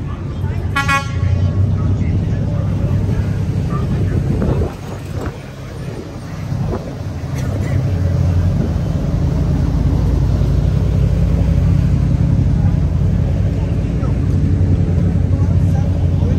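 A ferry engine rumbles low and steady.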